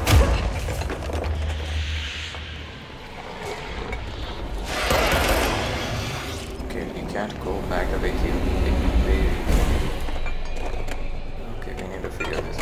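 Heavy debris rumbles and crashes.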